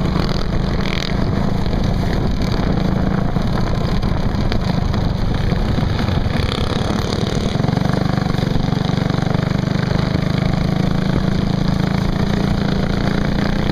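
A small engine drones loudly up close, buzzing steadily as it speeds along.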